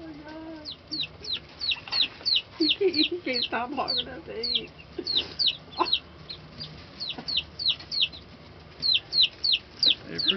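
Baby chicks peep rapidly and shrilly, close by.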